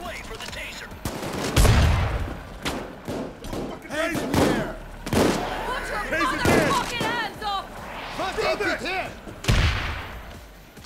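Gunshots ring out in loud, sharp bursts with echoing booms.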